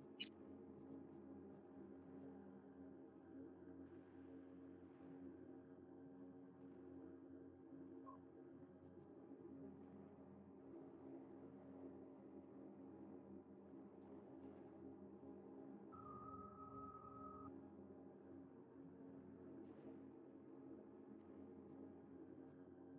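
Short soft menu clicks tick now and then.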